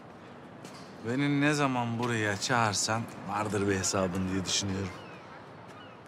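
A middle-aged man speaks in a deep, low voice nearby.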